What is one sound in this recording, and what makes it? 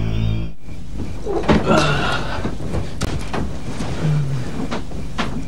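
Bedding rustles as a man shifts in bed.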